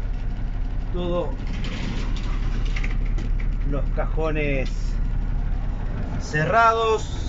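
A man speaks in short, animated phrases close by.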